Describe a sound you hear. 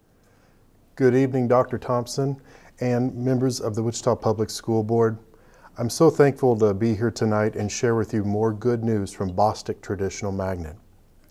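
A man speaks calmly and warmly into a close microphone.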